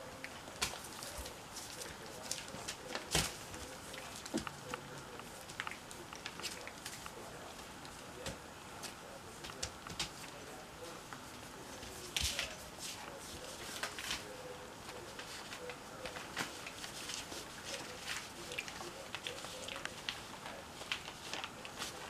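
Newborn puppies squeak and whimper softly now and then.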